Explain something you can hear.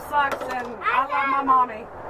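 A young girl shouts excitedly.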